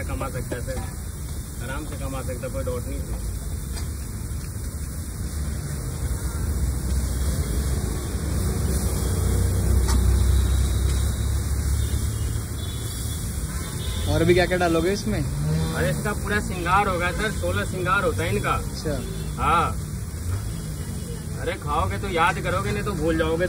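A metal spatula scrapes and taps on a griddle.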